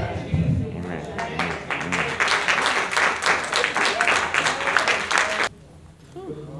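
People clap their hands rapidly.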